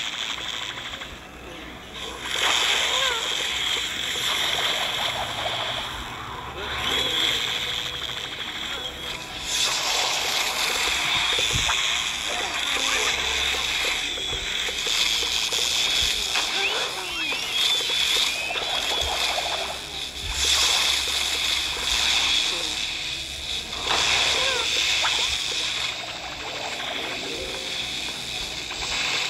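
Game fire blasts roar and whoosh across the field.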